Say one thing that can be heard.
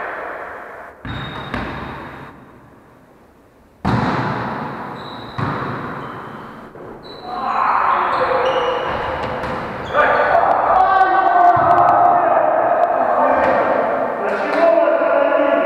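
A volleyball is struck by hand in an echoing gym.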